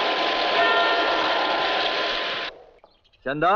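A clock sounds.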